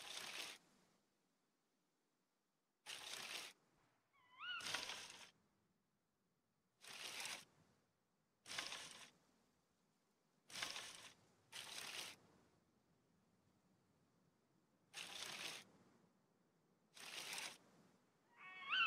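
Short scraping, rustling bursts sound again and again as wooden items are crafted.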